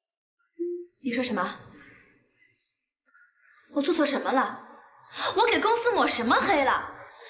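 A young woman speaks angrily and indignantly, close by.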